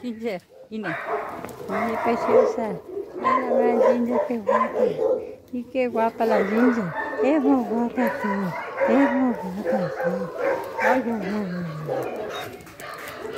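A dog whines excitedly up close.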